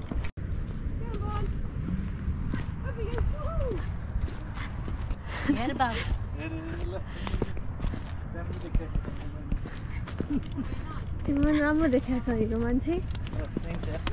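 A young woman talks and laughs nearby.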